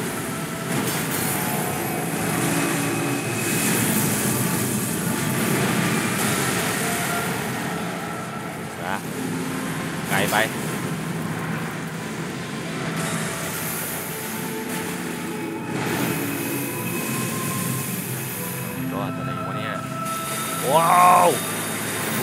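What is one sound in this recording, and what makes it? Magic blasts crackle and roar.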